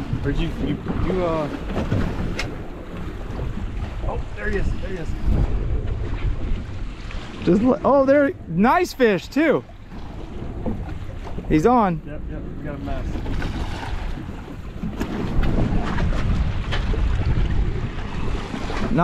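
Wind blows across open water outdoors.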